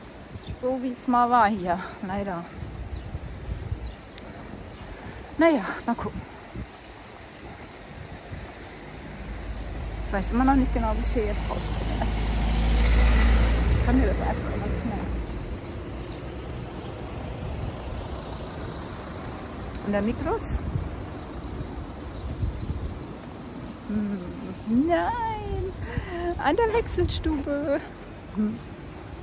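A middle-aged woman speaks calmly and close by, pausing often.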